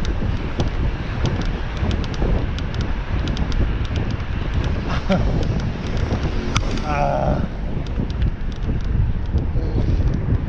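A bicycle rattles and clicks over the road.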